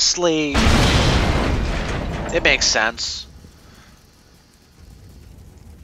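Flames crackle on a burning tank.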